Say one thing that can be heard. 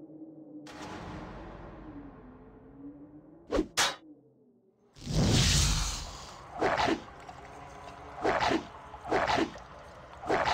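Weapons clash and strike in a close fight.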